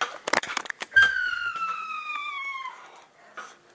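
A young woman screams loudly, her voice slowly falling.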